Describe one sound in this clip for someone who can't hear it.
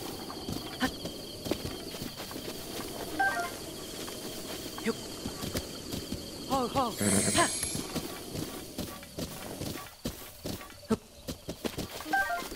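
Horse hooves thud steadily on grass.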